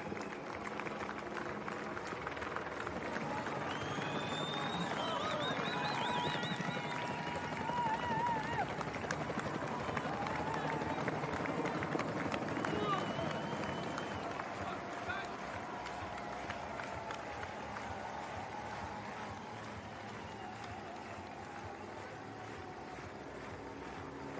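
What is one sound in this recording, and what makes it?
A crowd cheers and claps along a road outdoors.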